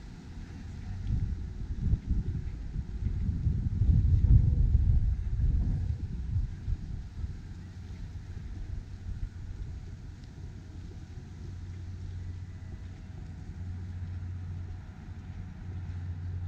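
Footsteps scuff softly on a paved path.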